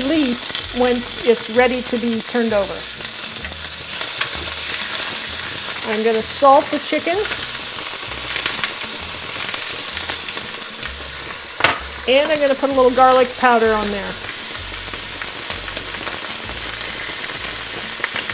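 Raw chicken sizzles as it is laid into a hot pan.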